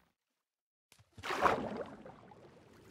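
Something splashes into water.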